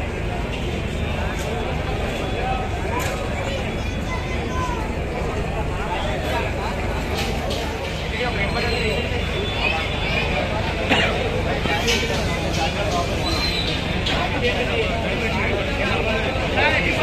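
A large crowd of men chatters and shouts loudly outdoors.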